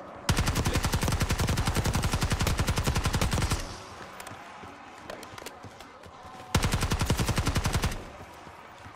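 Rapid automatic gunfire rattles in long bursts.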